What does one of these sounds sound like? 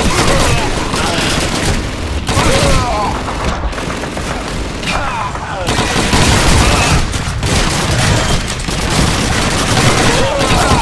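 A gun fires in bursts indoors.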